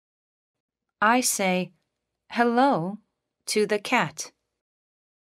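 A young girl speaks cheerfully and clearly, close by.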